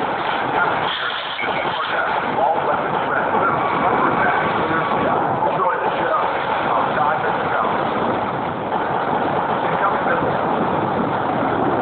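Tank guns fire in repeated bursts.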